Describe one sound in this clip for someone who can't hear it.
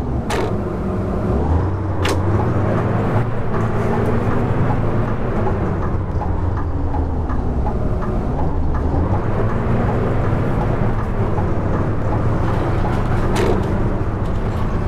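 A diesel city bus engine rumbles as the bus drives, its pitch rising and falling with the revs.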